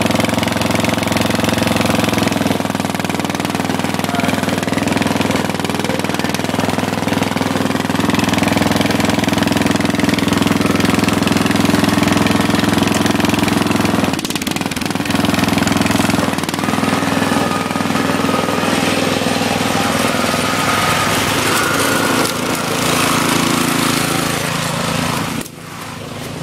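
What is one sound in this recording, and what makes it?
A small motor engine runs steadily close by.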